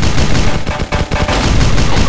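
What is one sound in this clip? A video game explosion bursts.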